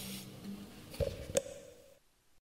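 A hand thumps on the wooden body of a guitar.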